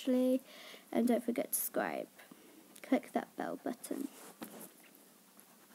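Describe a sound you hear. A young girl speaks softly and close by.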